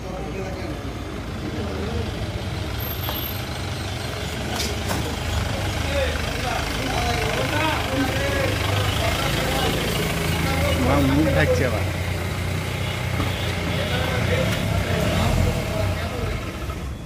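A vehicle engine rumbles as it drives up slowly and idles.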